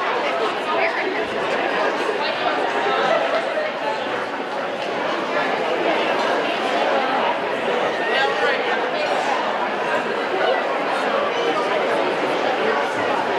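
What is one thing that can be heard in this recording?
A crowd of people chatters in a large hall.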